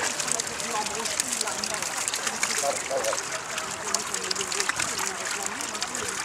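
Fish flap and splash in shallow water.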